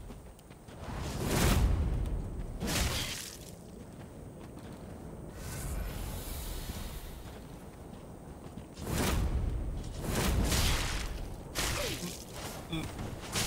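Weapons swing and strike with heavy whooshing thuds.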